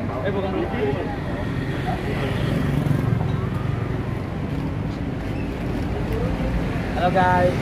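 Several young men talk and laugh together nearby, outdoors.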